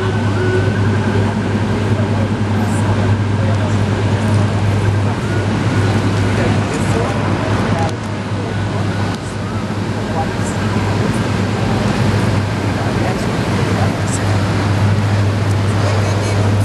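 City traffic rumbles steadily on a busy street outdoors.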